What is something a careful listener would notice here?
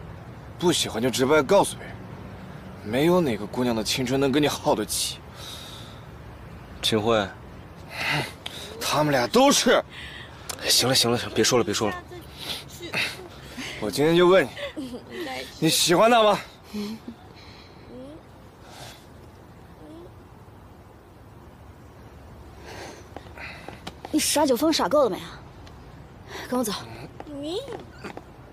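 A young man speaks tensely nearby.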